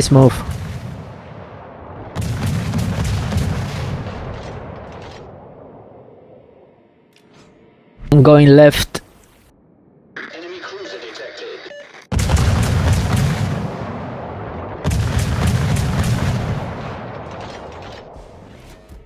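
Heavy naval guns fire in loud booming salvos that rumble and fade away.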